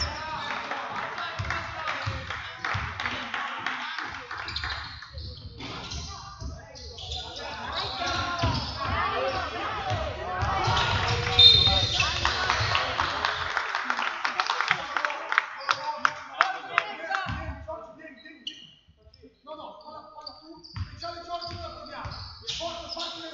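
Basketball shoes squeak sharply on a hard floor in a large echoing hall.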